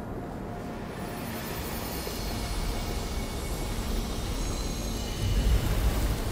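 A whooshing magical energy drains from a plant.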